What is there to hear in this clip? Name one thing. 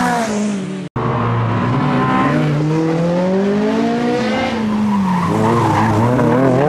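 A car engine revs hard and roars nearby.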